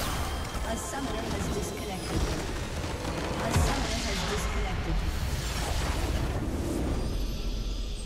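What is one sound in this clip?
Game spell effects crash and burst loudly in a busy battle.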